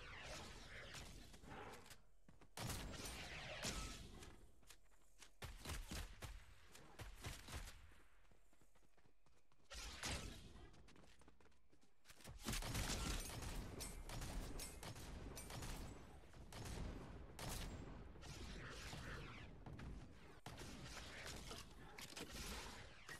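Gunshots and hits from a video game crack in quick bursts.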